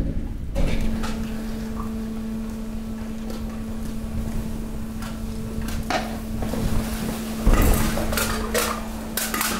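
Trash rustles and clatters as it shifts and tumbles.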